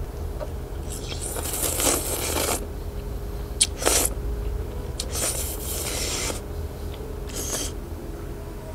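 A young man slurps noodles loudly, close by.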